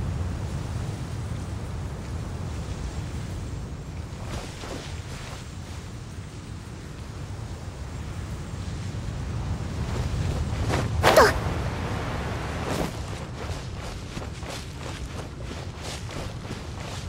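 Footsteps swish quickly through grass.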